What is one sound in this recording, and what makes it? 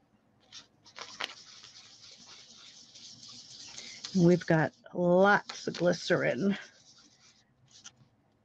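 A foam dauber rubs and swishes softly across paper.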